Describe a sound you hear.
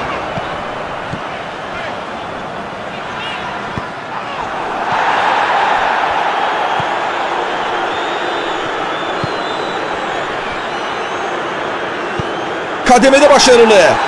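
A large crowd roars and chants steadily in a stadium, swelling for a while.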